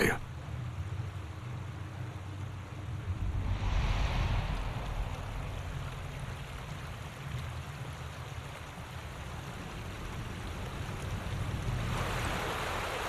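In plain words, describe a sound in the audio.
Wind rumbles against a microphone.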